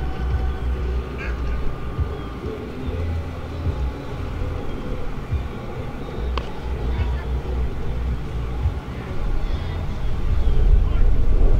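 Wind rumbles across the open air.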